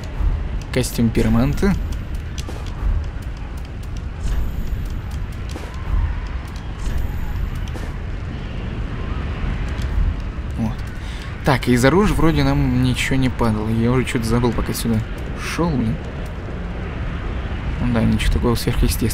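Soft game menu clicks tick now and then.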